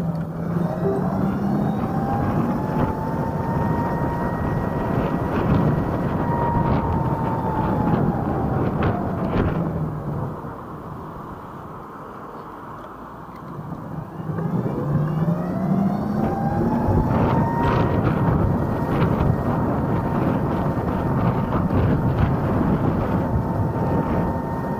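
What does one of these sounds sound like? Wind and tyres rush steadily over the road.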